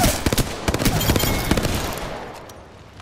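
A gun fires rapid bursts of shots up close.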